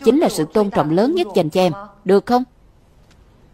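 A young woman talks on a phone with animation.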